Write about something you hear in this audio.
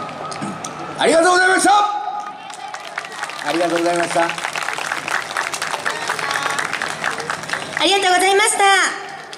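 A group of young women shout a chant in unison.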